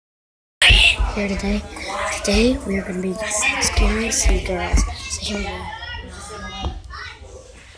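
A young boy talks close to the microphone.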